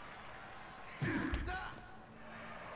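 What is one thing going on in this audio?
A heavy thump of a tackle lands.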